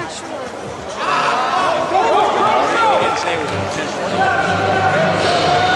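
Young men on the sideline cheer loudly.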